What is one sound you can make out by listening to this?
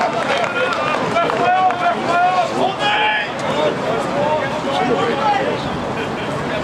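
Young men shout loudly to one another outdoors.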